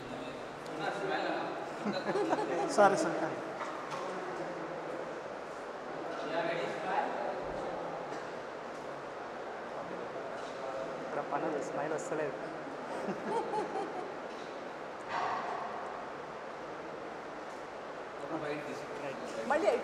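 Several men chat quietly.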